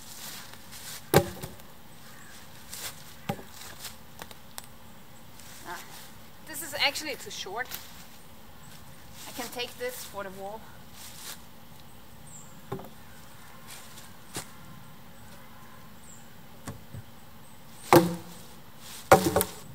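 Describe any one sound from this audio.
Footsteps rustle through dry leaves.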